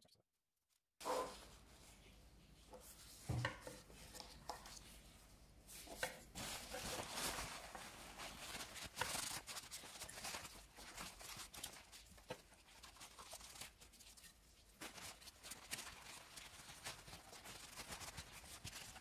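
A cloth rubs against a metal case.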